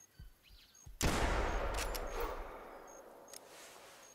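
A pistol fires a single loud shot that echoes away.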